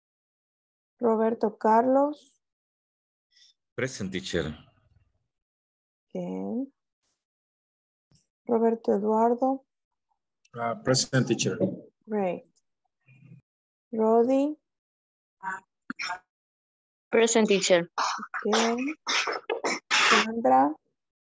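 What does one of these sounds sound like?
A woman speaks with animation through an online call, in short bursts with pauses.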